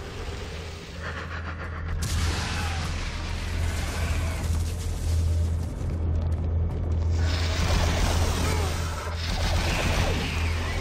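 A low electronic hum drones steadily.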